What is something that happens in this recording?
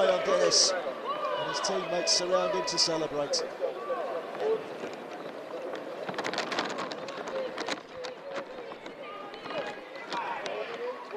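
Teenage boys shout and cheer excitedly outdoors.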